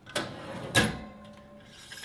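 A metal tray scrapes out of an oven.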